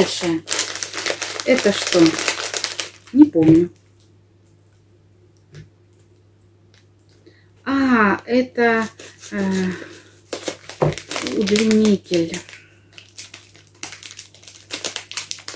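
A plastic packet crinkles and rustles.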